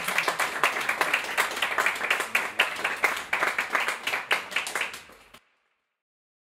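An audience applauds with steady clapping, then the clapping stops.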